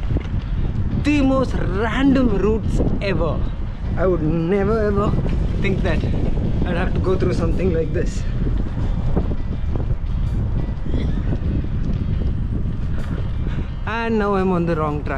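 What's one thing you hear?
A man talks close to the microphone while riding.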